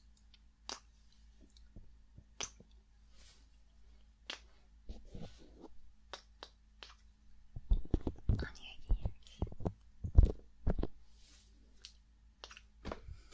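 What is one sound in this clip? A young woman whispers softly and close to a microphone.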